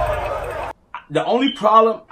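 A young man exclaims with animation, close to the microphone.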